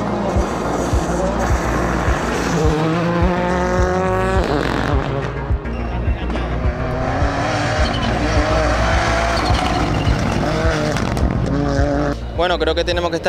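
A rally car engine roars and revs hard as the car speeds past.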